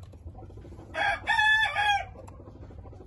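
A rooster gives a loud, short crow.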